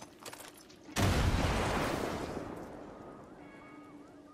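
An explosion booms and its rumble slowly fades.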